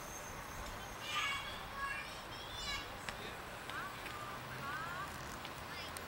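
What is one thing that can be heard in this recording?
Children shout and chatter a short way off.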